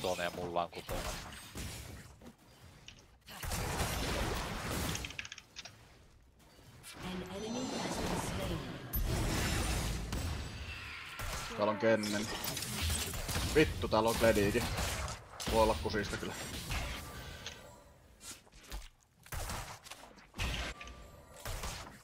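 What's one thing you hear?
Clashing and zapping battle effects from a video game play.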